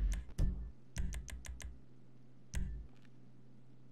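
A video game menu clicks as options are selected.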